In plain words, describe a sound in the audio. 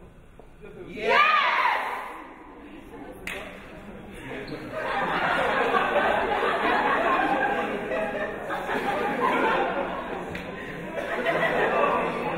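A young woman sings loudly with energy.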